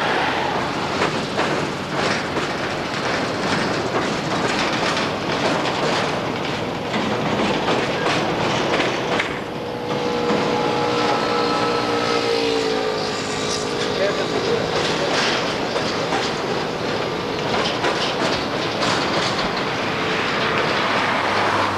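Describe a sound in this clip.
A long freight train rumbles and clatters along the tracks.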